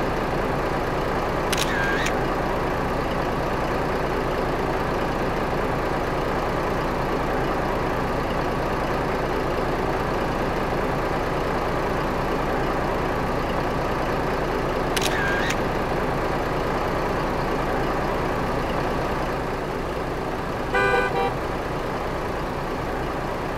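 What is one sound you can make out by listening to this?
Tyres hum on a road.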